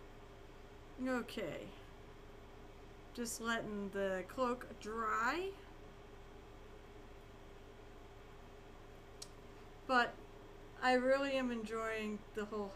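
A young woman talks casually into a microphone.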